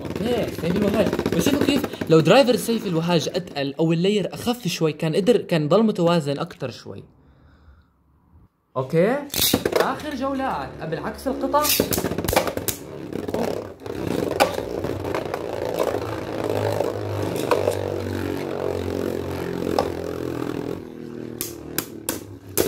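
Spinning tops whir and scrape across a plastic bowl.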